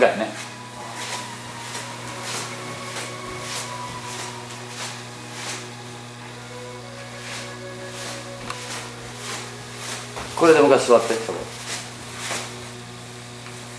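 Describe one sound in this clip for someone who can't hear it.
Footsteps tap on a wooden floor indoors.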